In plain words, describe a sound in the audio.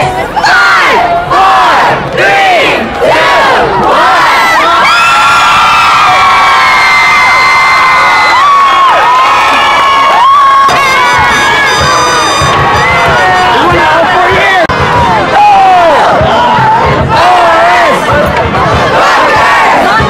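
A crowd of young women cheers and screams loudly close by.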